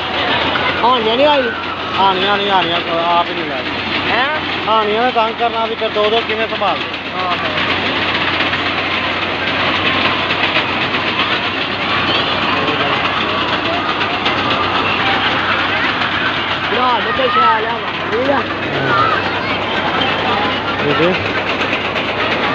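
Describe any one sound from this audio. Children shout and squeal excitedly on a ride nearby.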